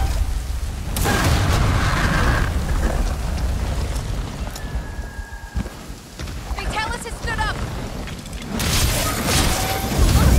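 Fire bursts with crackling blasts.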